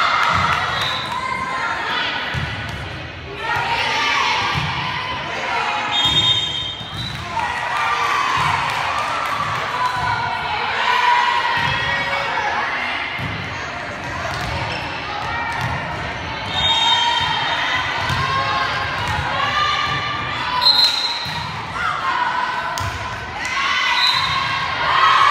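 A crowd of girls and spectators chatter and shout in a large echoing hall.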